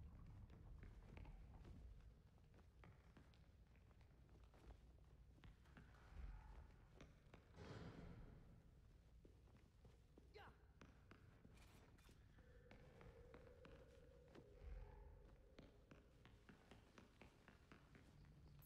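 Quick footsteps patter across a hard floor.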